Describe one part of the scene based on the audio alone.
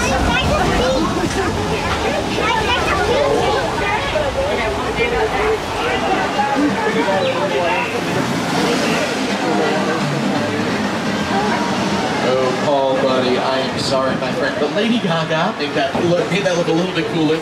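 A tram engine hums and rumbles steadily.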